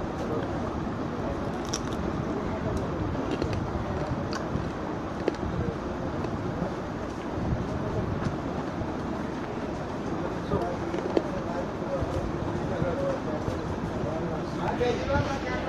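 A man chews food with wet smacking sounds.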